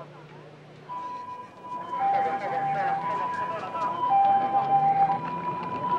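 An ambulance siren wails in two alternating tones.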